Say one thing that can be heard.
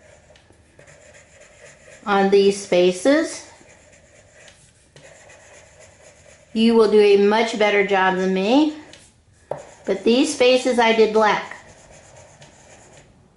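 A marker scratches softly across paper.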